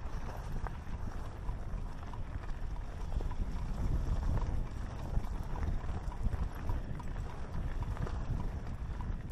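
Mountain bike tyres crunch and rattle over loose rock and dirt.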